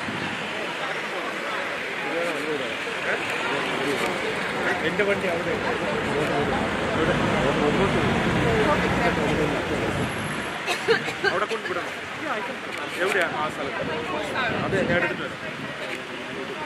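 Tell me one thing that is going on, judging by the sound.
Car engines hum as vehicles drive slowly past.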